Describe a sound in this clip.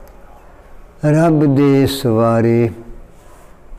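An elderly man speaks slowly and clearly into a microphone.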